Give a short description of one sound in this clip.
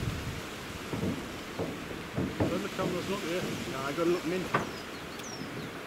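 Men talk with each other as they approach, outdoors.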